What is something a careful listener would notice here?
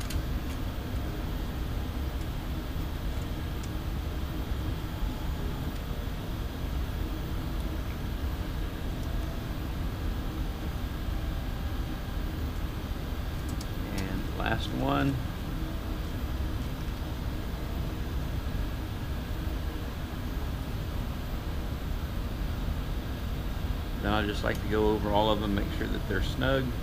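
Hands fiddle with a metal nameplate, making soft scrapes and taps.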